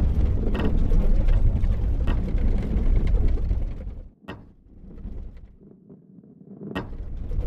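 A ball knocks against a wooden crate.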